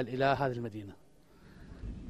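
A man speaks into close microphones.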